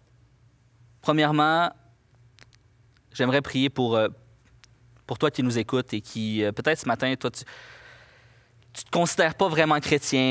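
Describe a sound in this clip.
A man speaks slowly and deliberately through a microphone in a large echoing hall, with long pauses.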